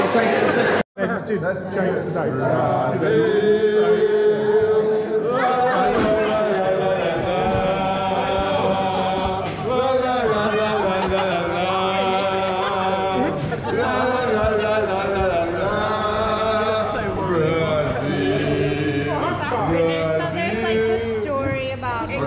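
A crowd of men and women sings loudly together.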